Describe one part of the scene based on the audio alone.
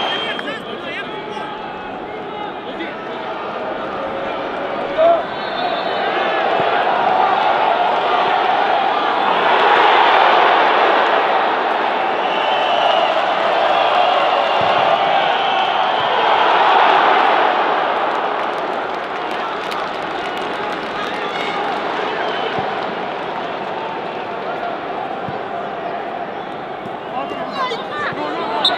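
A large stadium crowd cheers and roars, swelling loudly and then fading.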